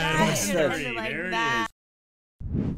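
Several young men and women laugh together.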